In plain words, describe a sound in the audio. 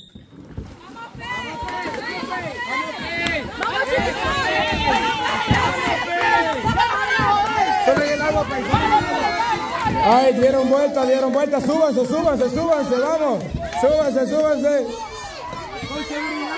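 A crowd of young people cheers and chatters loudly outdoors.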